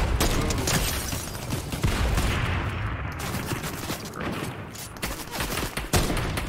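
Sniper rifle shots crack sharply.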